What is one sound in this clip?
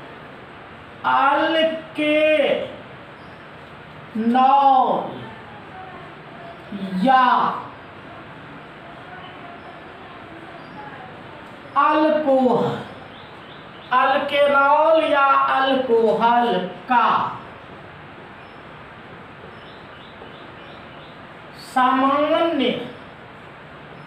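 A man speaks slowly and clearly in short phrases, as if dictating.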